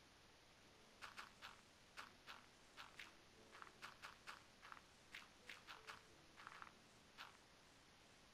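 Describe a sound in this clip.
Blocks are set down with soft, quick thuds.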